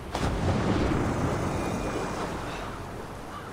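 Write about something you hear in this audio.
Water splashes and bubbles as a figure dives under the surface.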